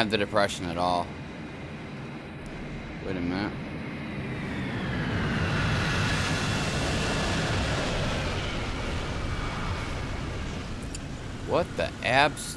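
A tank engine rumbles and whines as the tank drives, growing louder and then easing off.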